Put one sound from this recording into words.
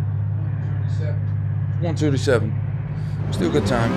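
A man talks casually into a microphone.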